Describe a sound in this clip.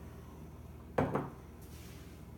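A glass is set down on a wooden table with a knock.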